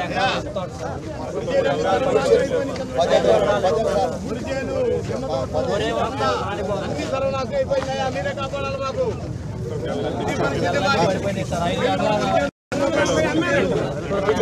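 Several men talk at once close by in a lively crowd.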